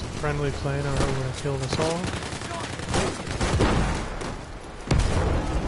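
A rifle fires in sharp single shots.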